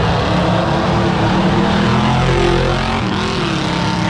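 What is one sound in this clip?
A race truck's engine roars loudly as it speeds past.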